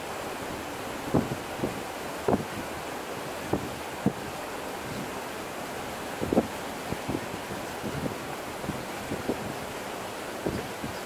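Small waves lap softly at the water's edge.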